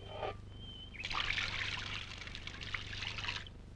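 Water pours from a watering can and splashes onto soil.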